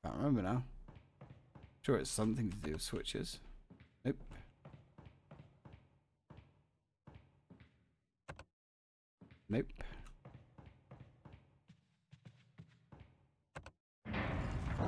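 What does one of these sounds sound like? Footsteps run quickly across a wooden floor.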